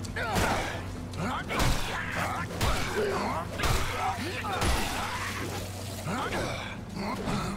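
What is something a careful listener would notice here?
A monster shrieks and snarls.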